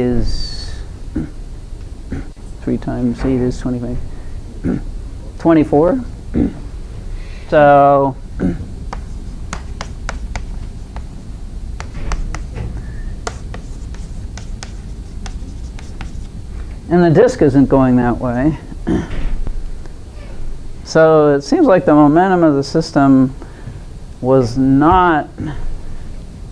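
An older woman speaks in a lecturing tone.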